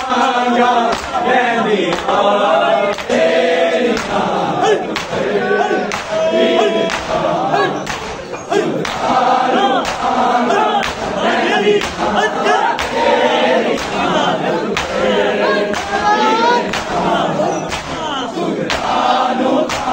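A large crowd of men chants loudly in unison.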